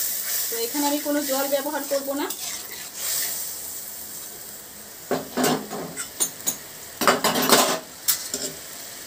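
A thick sauce bubbles and simmers in a pan.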